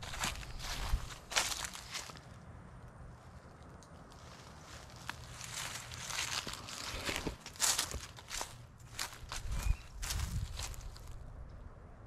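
Dry leaves and twigs crunch underfoot.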